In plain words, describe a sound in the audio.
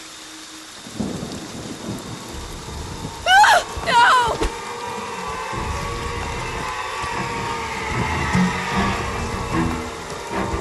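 Rain patters steadily on the ground.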